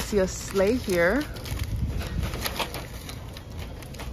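Small packaged items rustle and clatter as a hand rummages through a wire basket.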